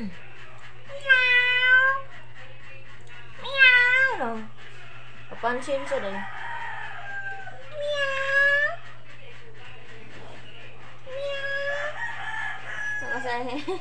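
A kitten meows loudly and repeatedly close by.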